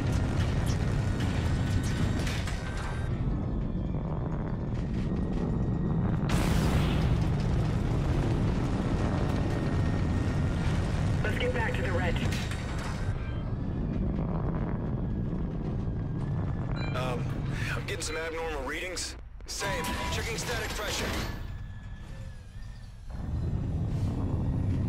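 A spacecraft engine rumbles low.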